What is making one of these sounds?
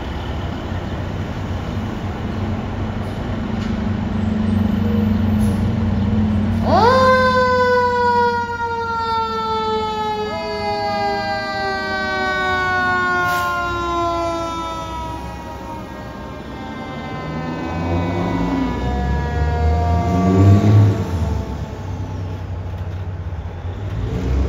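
Fire truck engines rumble and idle nearby.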